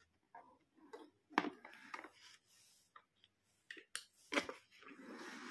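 Plastic toys click and clatter as a hand handles them.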